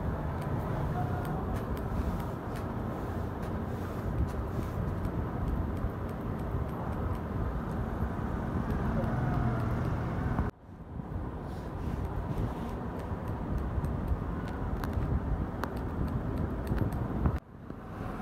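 Scissors snip quickly through hair close by.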